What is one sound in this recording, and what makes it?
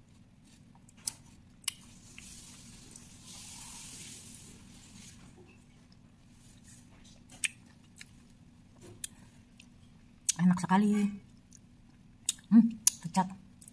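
Fingers press and squish soft, saucy food on a plate.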